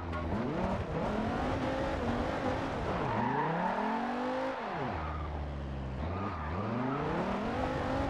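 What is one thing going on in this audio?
Tyres screech as a car slides.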